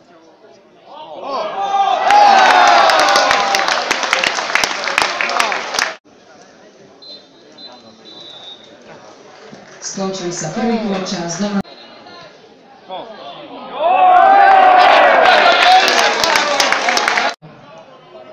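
A crowd cheers and shouts loudly in bursts.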